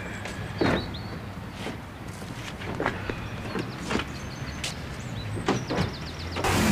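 Knocks and thumps sound as a man climbs into a car.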